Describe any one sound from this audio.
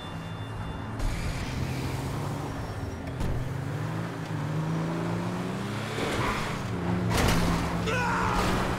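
A heavy truck engine rumbles and revs up.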